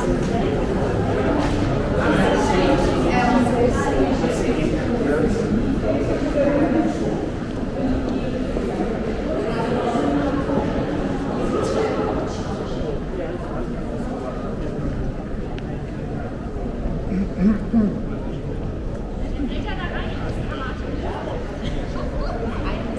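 A crowd of people chatter nearby in an echoing archway.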